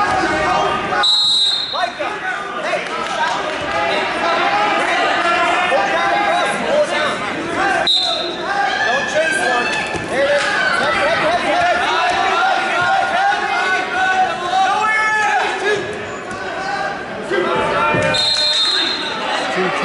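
A referee blows short, sharp whistle blasts.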